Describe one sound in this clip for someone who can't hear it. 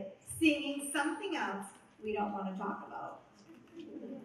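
A woman speaks into a microphone over loudspeakers, reading out calmly.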